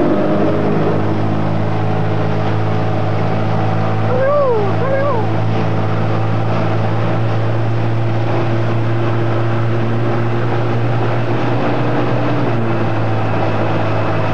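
Water washes against a boat's hull.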